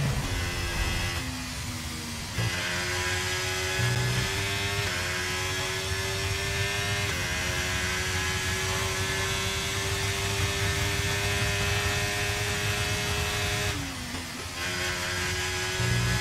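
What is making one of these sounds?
A racing car engine screams at high revs, shifting up through the gears and dropping pitch as it brakes.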